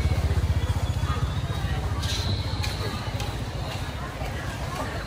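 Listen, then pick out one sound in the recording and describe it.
A motor scooter engine putters close by, then fades.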